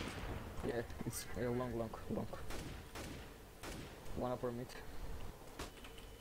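A rifle fires a few single shots.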